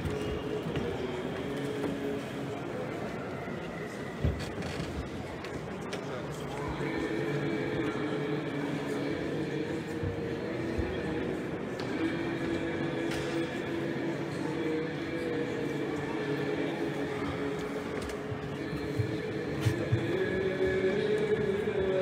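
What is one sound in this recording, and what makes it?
Men chant together in a large echoing hall.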